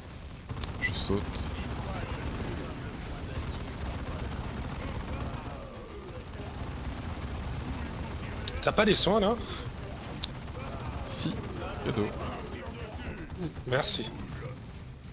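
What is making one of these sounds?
Explosions boom now and then.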